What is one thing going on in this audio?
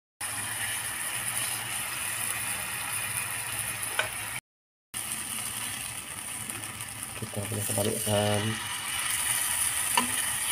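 Meat sizzles steadily in hot oil.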